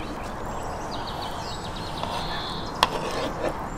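A fork scrapes pieces of meat across a plate.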